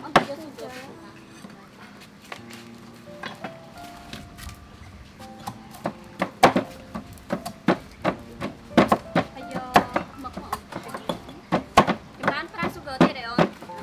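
A pestle pounds in a stone mortar.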